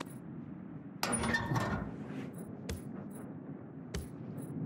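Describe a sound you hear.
Pieces of firewood knock and clatter into a stove.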